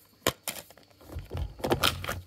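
Hands rustle and handle a plastic case.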